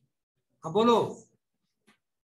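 A man speaks briefly and calmly close to a microphone.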